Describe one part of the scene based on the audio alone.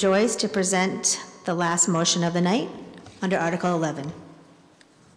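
A woman speaks calmly into a microphone, heard through loudspeakers in an echoing hall.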